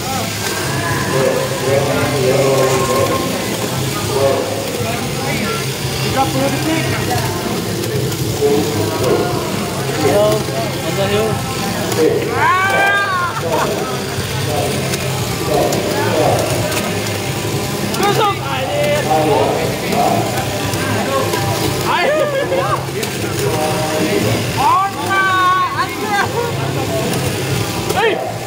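Small toy cars whir as they race around a plastic track.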